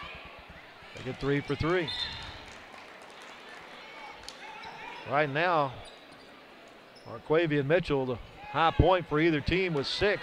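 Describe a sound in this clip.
A crowd of young people cheers and chants loudly in an echoing hall.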